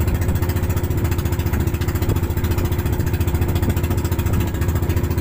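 A boat's outboard motor rumbles steadily.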